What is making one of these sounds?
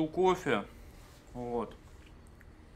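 A man speaks briefly and casually into a nearby microphone.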